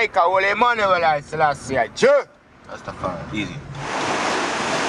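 A man speaks in a lively voice close by.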